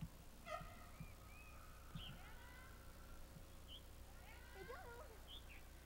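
A small plastic wheelbarrow rolls and bumps over grass.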